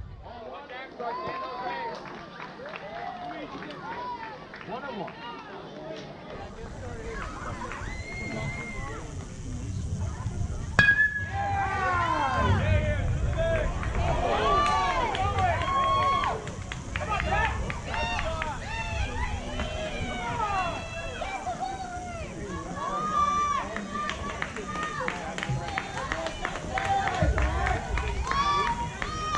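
Young players and adults shout and cheer outdoors, louder after the hit.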